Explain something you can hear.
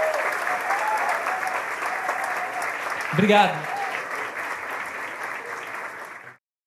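An audience applauds and cheers in a hall.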